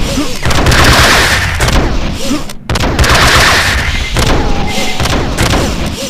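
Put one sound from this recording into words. An energy weapon fires zapping shots.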